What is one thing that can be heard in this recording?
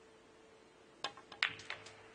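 A cue strikes a ball sharply.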